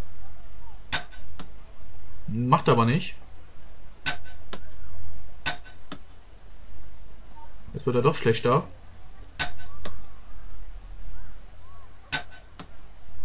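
A crossbow fires several times with short, sharp snaps.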